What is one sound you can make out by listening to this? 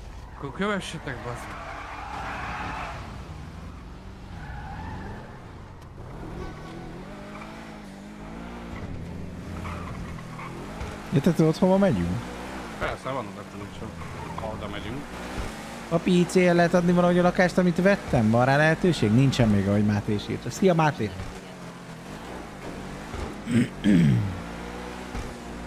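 A car engine revs loudly and rises in pitch as it speeds up.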